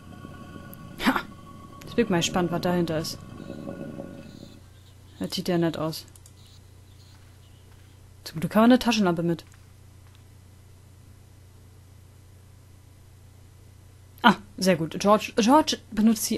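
A young man talks casually into a close microphone, in short bursts.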